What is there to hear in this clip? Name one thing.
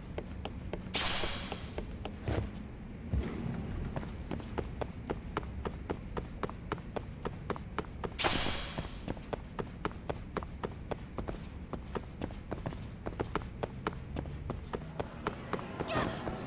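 Quick footsteps run on a hard floor.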